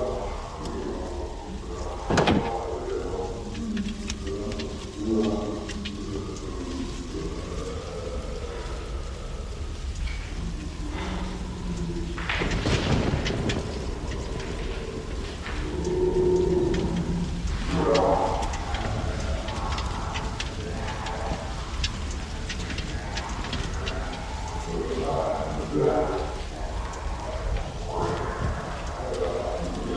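Footsteps crunch slowly on debris.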